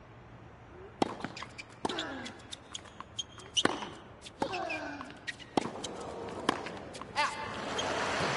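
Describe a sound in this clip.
A tennis ball is struck back and forth with sharp pops of the racket.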